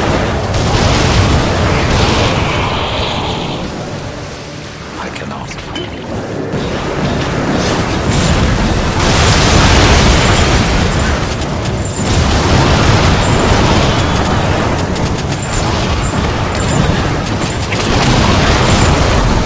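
Gunfire blasts rapidly in bursts.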